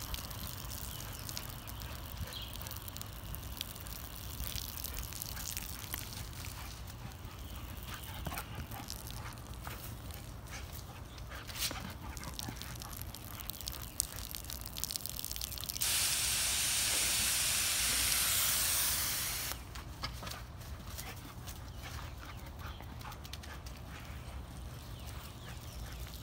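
A dog's paws patter on dry grass as it runs.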